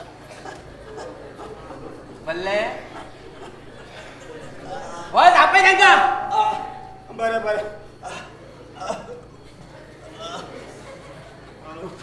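A second man answers loudly from a stage, heard from a distance.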